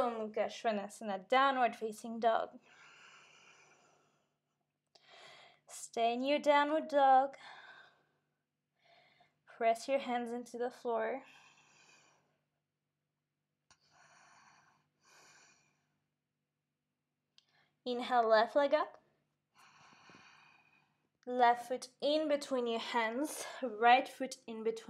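A young woman speaks calmly, giving instructions close to a microphone.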